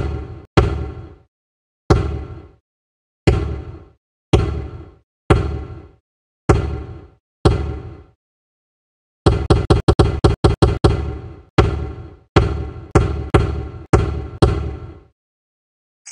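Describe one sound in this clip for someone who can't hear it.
Rubber stamps thump down one after another, sometimes in quick bursts.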